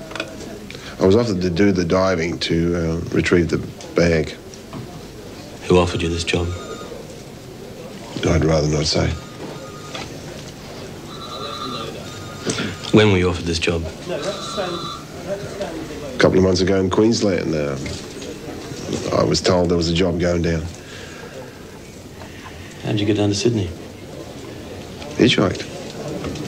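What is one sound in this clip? A man speaks calmly and close by, with pauses.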